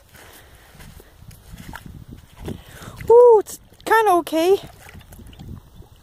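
Small waves lap gently against a shore.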